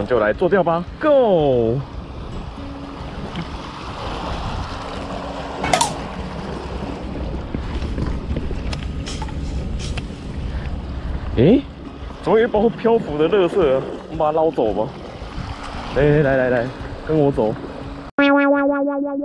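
Small waves lap against rocks at the shore.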